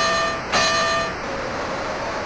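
A boxing bell rings sharply several times.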